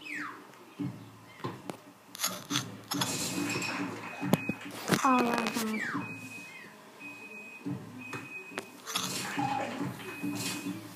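Video game sound effects and music play from a television.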